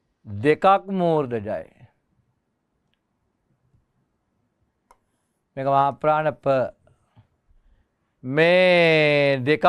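An older man speaks calmly, as if teaching, close to a microphone.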